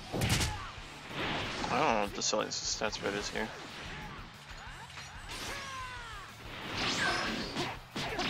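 Energy blasts whoosh and explode.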